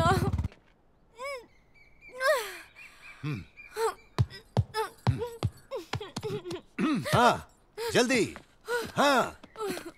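A young woman exclaims and speaks with animation.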